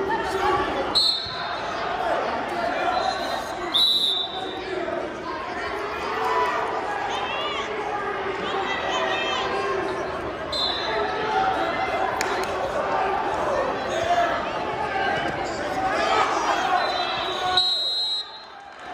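Whistles blow in the hall.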